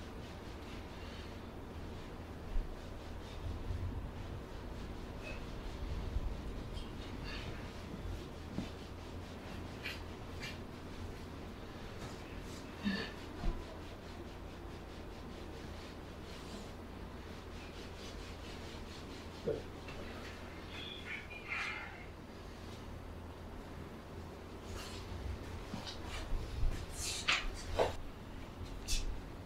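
Hands press and rub on bare skin.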